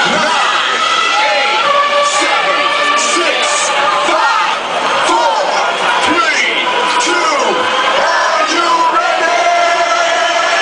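Dance music plays loudly from speakers.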